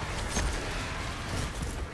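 An energy weapon blasts in a video game.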